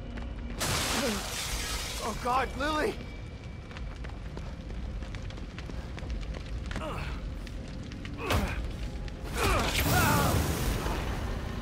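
A man shouts in distress.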